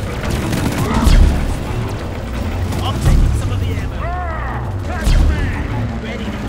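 Loud explosions boom now and then.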